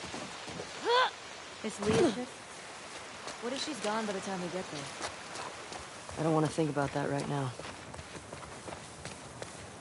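Footsteps run over wet ground and through tall grass.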